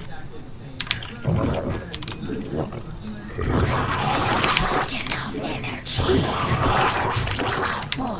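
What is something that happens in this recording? Gunfire and creature screeches of a battle clash loudly.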